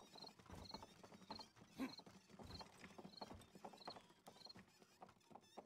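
Footsteps tap on wooden planks at a steady pace.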